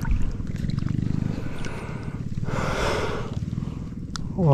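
A fish splashes in a net in shallow water.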